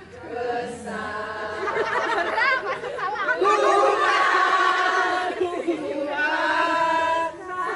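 A group of women sing and chant together outdoors.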